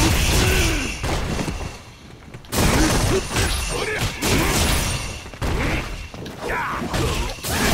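Video-game punches and kicks land with heavy impact sounds.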